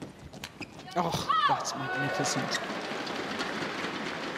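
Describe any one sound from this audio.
A crowd cheers and applauds in a large hall.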